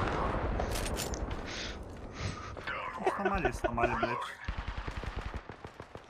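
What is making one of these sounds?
A young man laughs into a microphone.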